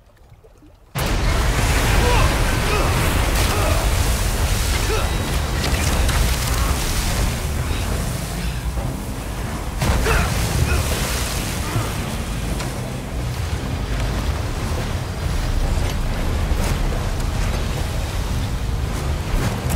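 A boat's motor roars steadily.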